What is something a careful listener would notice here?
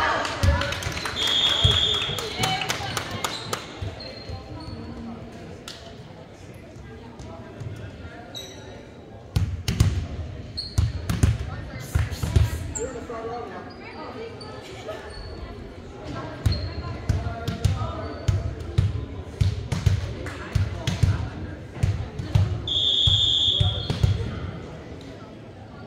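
Players and spectators shout and cheer in a large echoing hall.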